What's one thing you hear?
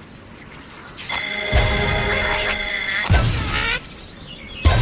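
A cheerful game jingle plays with chiming notes.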